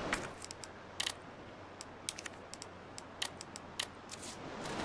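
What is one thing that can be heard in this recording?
Short menu clicks tick several times.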